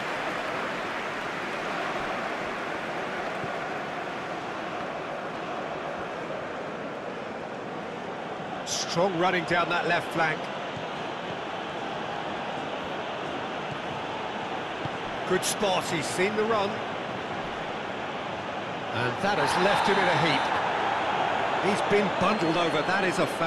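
A stadium crowd murmurs and cheers steadily all around.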